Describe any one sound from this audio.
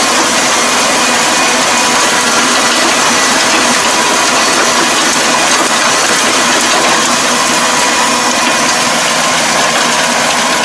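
A tractor engine runs with a steady loud drone close by.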